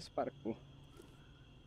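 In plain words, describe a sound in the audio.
A young man makes a short vocal sound close to a microphone.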